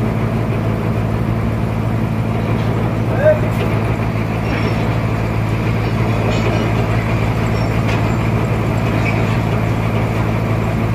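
A heavy wooden plank scrapes as it slides along a table.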